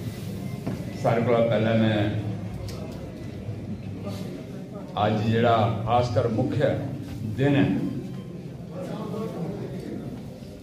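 An elderly man speaks into a microphone, heard through a loudspeaker in an echoing room.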